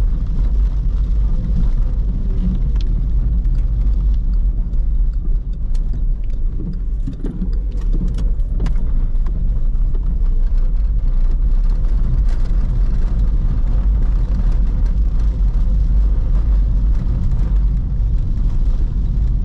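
Raindrops tap on the car's roof and windscreen.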